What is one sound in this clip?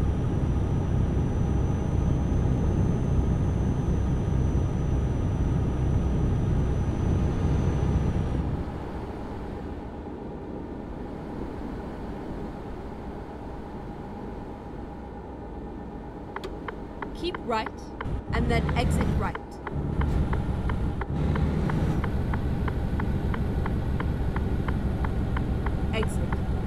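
A truck engine hums steadily while driving on a motorway.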